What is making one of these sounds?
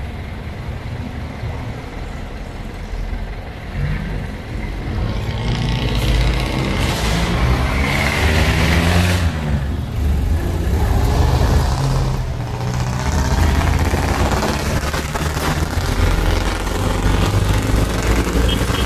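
A vehicle engine rumbles close by and rises as the vehicle pulls away.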